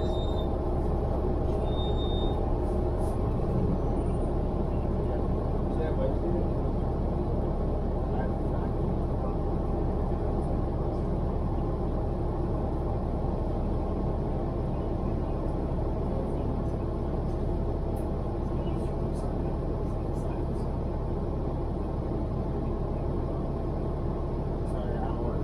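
Traffic hums steadily close by.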